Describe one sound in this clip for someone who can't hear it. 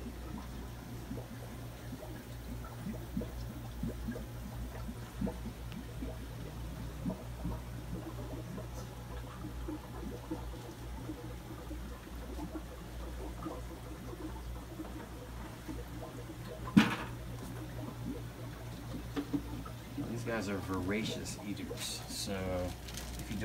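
Aquarium pumps hum steadily.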